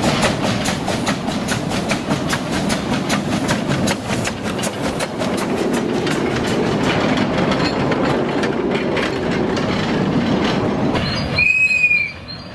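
Railway carriages rattle and clack closely past on the track.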